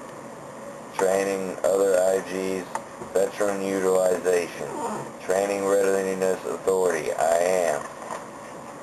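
A young man speaks calmly close to a microphone.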